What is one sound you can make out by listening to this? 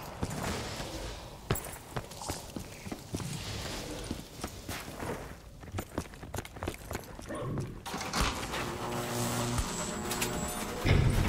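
Footsteps crunch steadily over snowy ground.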